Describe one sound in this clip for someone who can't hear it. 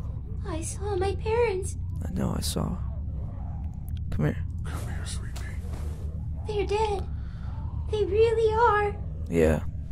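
A young girl speaks softly and tearfully.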